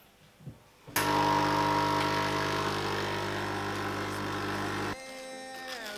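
A coffee machine hums and pours.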